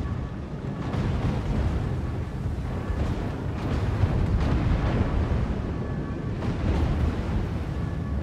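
Shells splash into the water with loud bursts.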